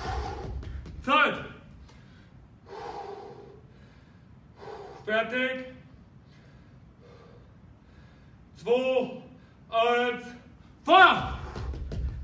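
A man speaks loudly and breathlessly, close by.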